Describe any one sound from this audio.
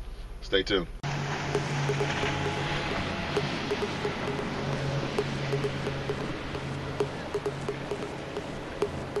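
A motorboat engine drones past and fades.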